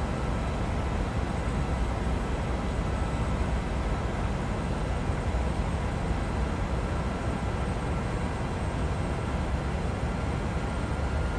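Jet engines and rushing air roar steadily inside an airliner's cockpit.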